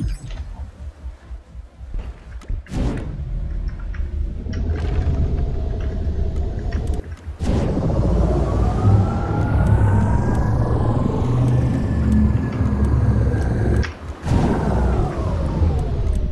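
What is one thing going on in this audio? A hovering vehicle's thrusters whoosh and hum, rising in pitch as it speeds up.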